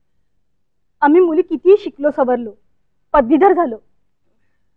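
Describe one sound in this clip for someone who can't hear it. A younger woman answers calmly nearby.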